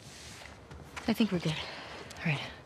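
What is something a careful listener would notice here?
A second young woman answers briefly.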